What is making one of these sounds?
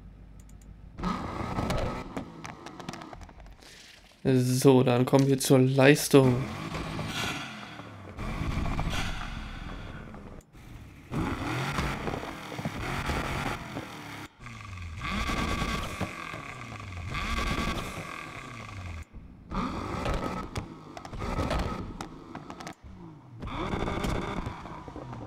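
A sports car engine idles and revs loudly.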